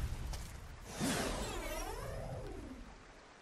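A blade whooshes through the air.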